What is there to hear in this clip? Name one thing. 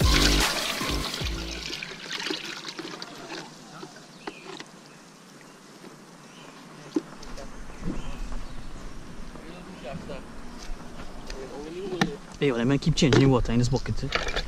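Plastic bucket lids knock and rattle.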